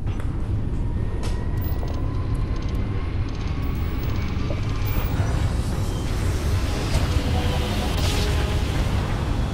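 A rushing roar swells and builds as a spaceship jumps away.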